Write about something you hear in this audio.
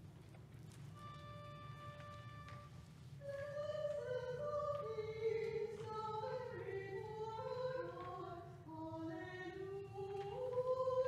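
An organ plays a slow hymn tune.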